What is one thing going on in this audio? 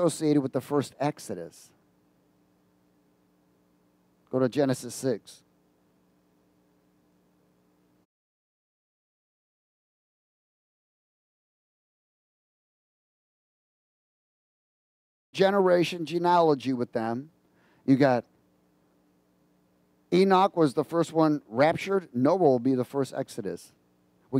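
A middle-aged man speaks with animation through a headset microphone, with pauses.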